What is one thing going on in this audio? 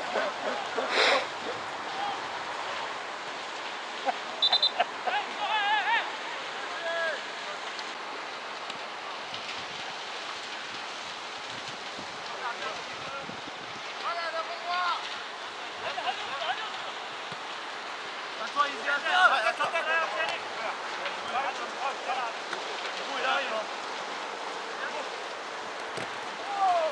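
Men shout to each other across an open football pitch outdoors.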